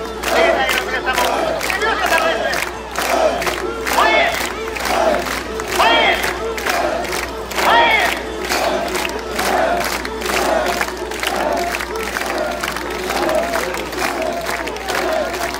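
A large crowd of men chants loudly and rhythmically outdoors.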